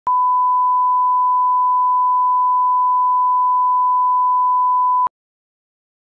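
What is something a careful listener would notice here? A steady, high-pitched test tone sounds and then cuts off abruptly.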